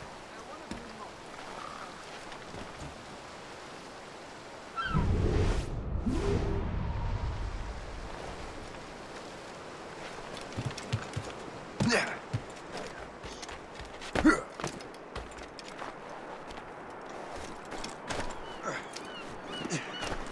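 Footsteps crunch on snow and sand.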